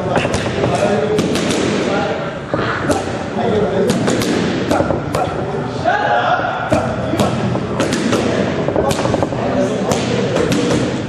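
Boxing gloves thud sharply against punch mitts in quick bursts.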